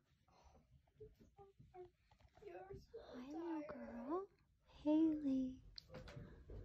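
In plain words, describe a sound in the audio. A puppy whimpers softly in its sleep.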